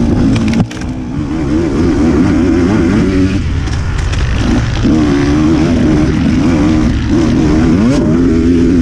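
Tyres rumble over a bumpy dirt trail.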